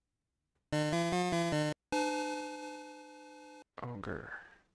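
A short electronic beeping tune plays.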